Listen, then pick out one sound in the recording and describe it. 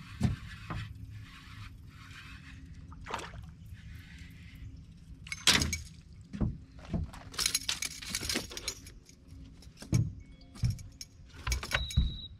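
A fishing reel clicks and whirs as line is reeled in.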